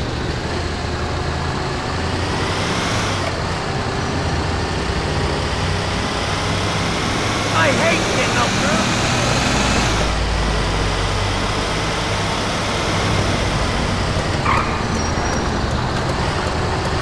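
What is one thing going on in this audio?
Tyres roll over pavement.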